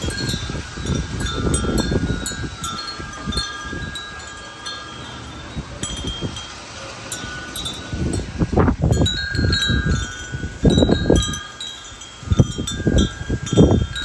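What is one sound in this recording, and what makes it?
Metal wind chimes ring softly with clear, lingering tones.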